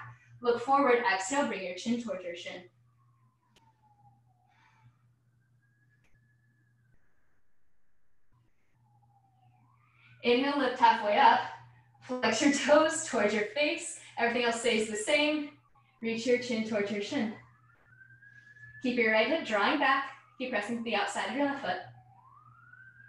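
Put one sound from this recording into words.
A woman speaks calmly in short bursts, heard through a microphone.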